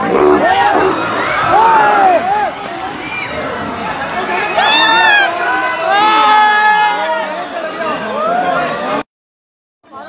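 A crowd of men shouts excitedly from a distance.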